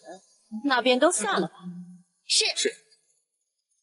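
A young woman speaks calmly and brightly.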